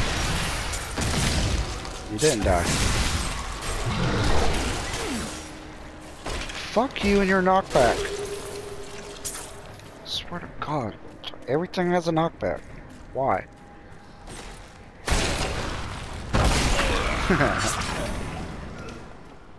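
Blades slash and thud against monsters in a fierce fight.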